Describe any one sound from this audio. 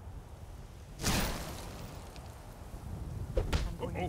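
An icy magic spell bursts with a crackling whoosh.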